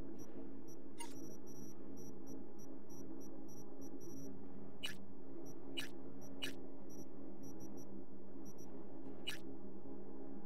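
Short electronic menu clicks blip now and then.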